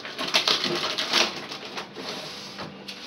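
Plastic items clatter and rattle as they are moved about.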